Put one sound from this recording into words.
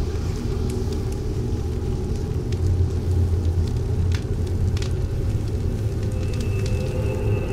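Burning wood crackles and pops.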